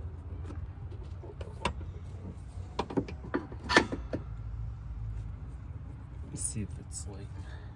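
Hands knock and scrape against a metal suspension part.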